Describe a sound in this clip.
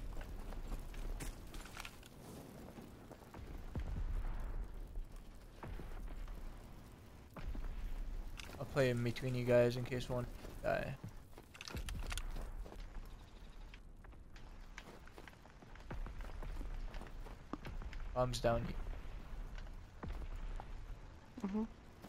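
A fire crackles and roars close by.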